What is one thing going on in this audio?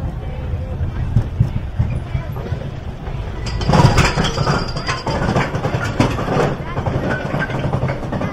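A lift hill chain clanks and rattles as it pulls a roller coaster train uphill.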